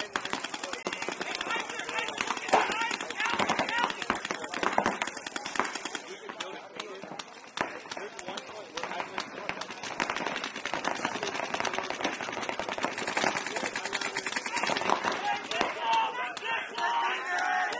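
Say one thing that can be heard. Paintball markers fire in rapid bursts of sharp pops.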